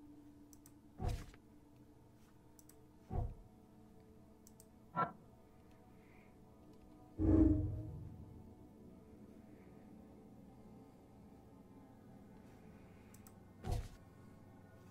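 Soft clicks and thuds sound as pages flip.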